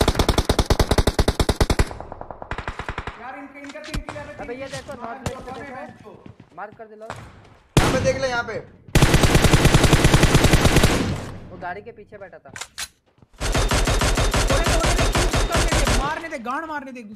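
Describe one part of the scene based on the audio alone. Rapid gunfire crackles from a game.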